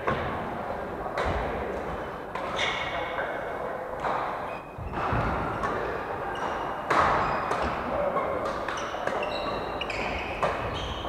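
Sports shoes squeak on a wooden floor.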